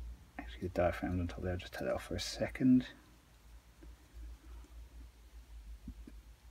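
Small metal parts click softly as hands handle them.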